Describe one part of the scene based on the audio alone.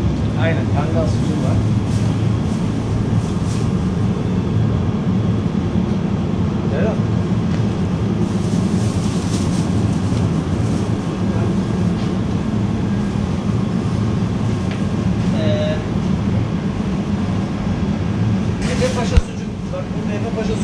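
Refrigerated display cases hum steadily with a low drone.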